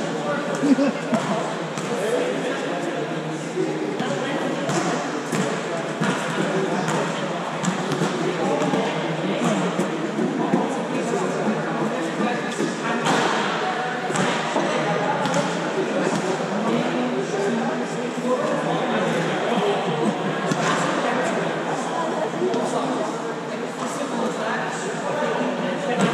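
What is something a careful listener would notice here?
A crowd of young men and women chatter and call out in a large echoing hall.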